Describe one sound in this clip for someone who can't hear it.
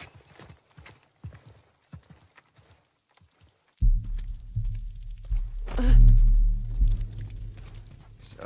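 Footsteps walk on stone in a large echoing hall.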